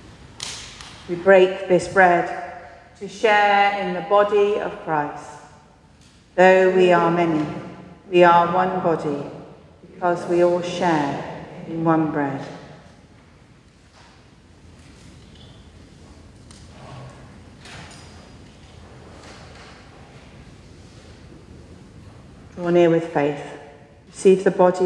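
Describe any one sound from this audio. A woman speaks calmly and clearly into a microphone in a large echoing hall.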